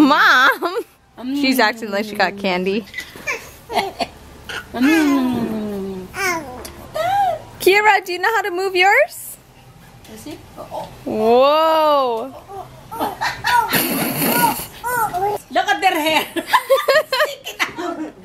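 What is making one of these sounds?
A woman talks nearby in a lively, playful voice.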